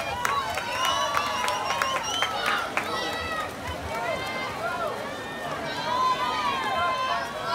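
A large outdoor crowd of children and adults cheers and shouts loudly.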